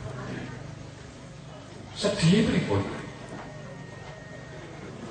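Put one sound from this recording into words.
An elderly man speaks forcefully into a microphone, heard through loudspeakers in an echoing hall.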